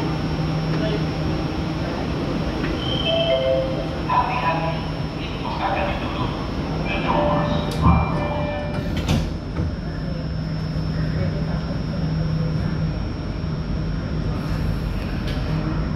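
A train hums steadily.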